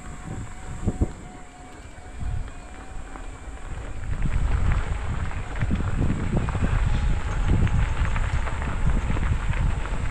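Footsteps crunch on loose gravel.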